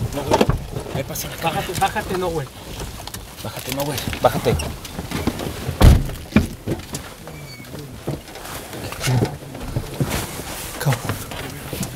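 A man speaks in a low, hushed voice close by.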